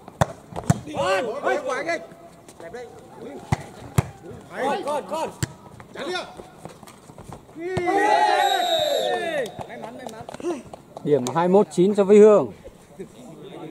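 Young men shout loudly outdoors during play.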